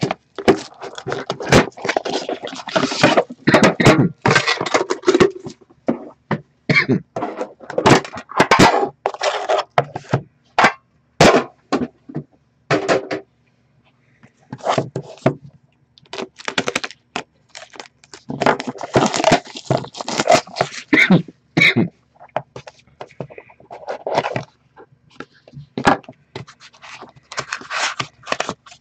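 Hands handle and slide cardboard boxes.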